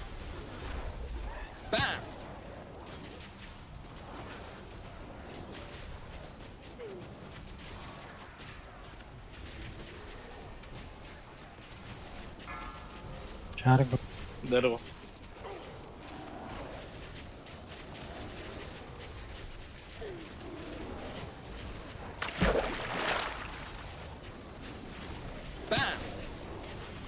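Spell effects whoosh and crackle in a battle.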